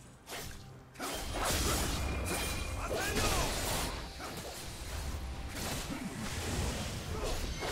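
Video game spell effects whoosh and crackle in bursts.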